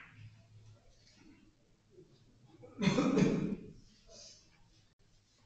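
Billiard balls click against each other and roll across a table.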